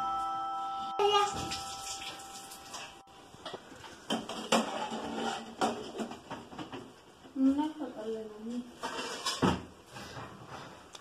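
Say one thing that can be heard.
A metal ladle scrapes and clinks against a pot.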